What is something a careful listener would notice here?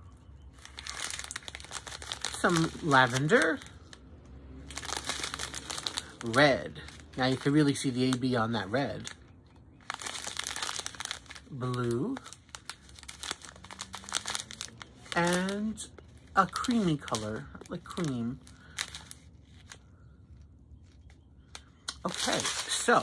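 Plastic bags crinkle as hands handle them.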